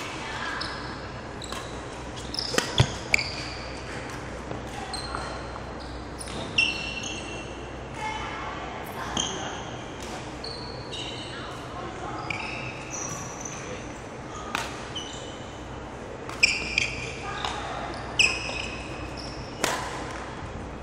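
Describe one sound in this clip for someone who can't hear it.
Badminton rackets hit a shuttlecock in a large echoing hall.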